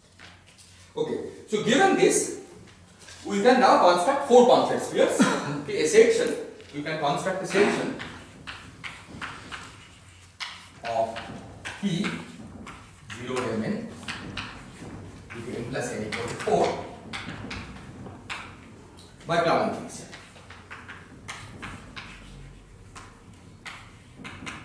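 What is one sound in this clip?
A man lectures calmly in a room with a slight echo.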